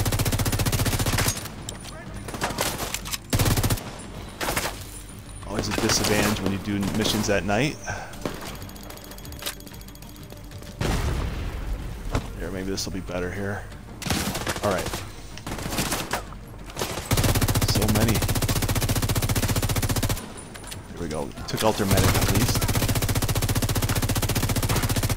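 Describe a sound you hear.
An automatic rifle fires bursts of gunshots.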